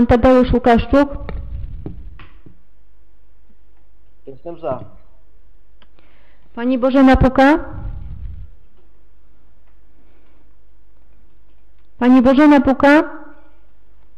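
A man speaks calmly through a microphone in a room with echo.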